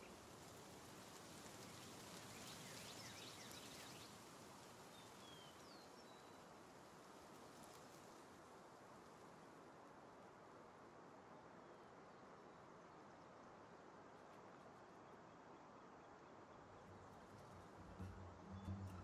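Wind rushes past steadily during flight.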